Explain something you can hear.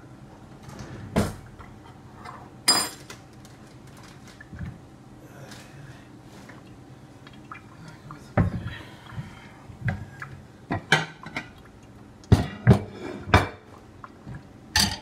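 Kitchenware clinks and knocks on a counter.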